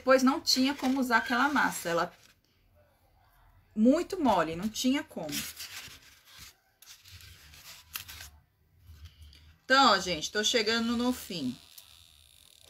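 A woman talks calmly and close by, explaining.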